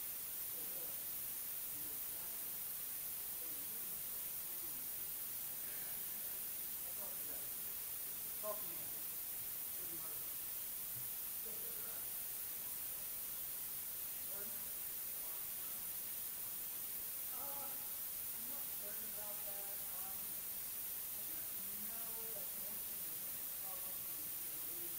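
A man speaks faintly and far off in a large echoing hall.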